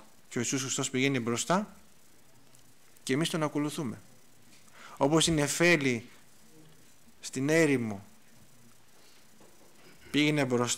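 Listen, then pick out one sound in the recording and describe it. A middle-aged man speaks slowly and earnestly into a microphone, pausing between phrases.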